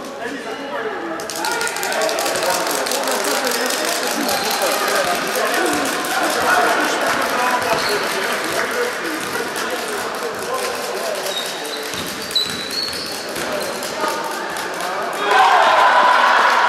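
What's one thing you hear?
Young girls call out to each other across the court.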